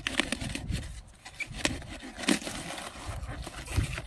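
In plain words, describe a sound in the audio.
A knife cuts through a thick cabbage stalk with a crunch.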